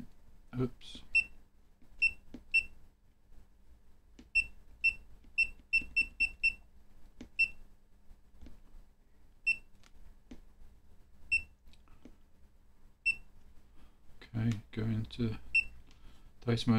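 An electronic device beeps sharply with each button press.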